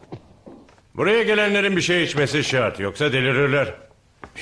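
A man speaks firmly, close by.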